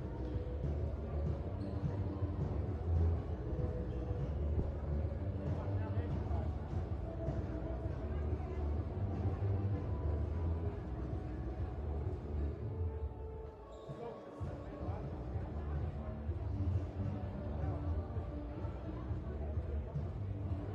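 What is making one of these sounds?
A handball bounces on the floor.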